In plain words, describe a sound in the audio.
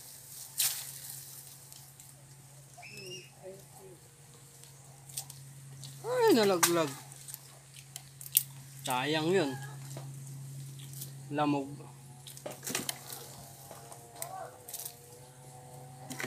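Leaves rustle and twigs snap as fruit is picked.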